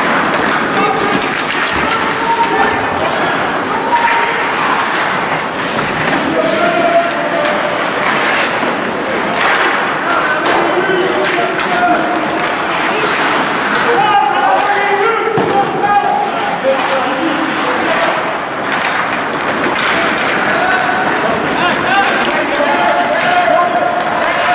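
A crowd of spectators chatters in a large echoing arena.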